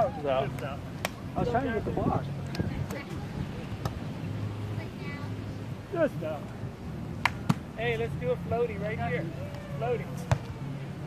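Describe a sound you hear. Several young men talk and call out nearby, outdoors.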